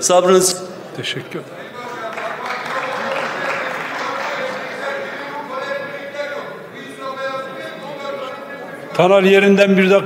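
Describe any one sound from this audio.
Many people murmur and call out across a large echoing hall.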